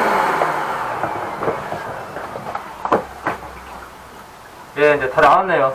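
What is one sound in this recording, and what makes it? A vacuum cleaner motor hums and winds down.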